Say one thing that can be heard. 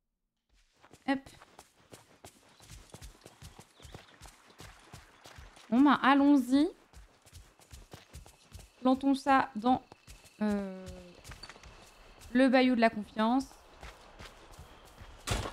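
Footsteps patter quickly and evenly on grass.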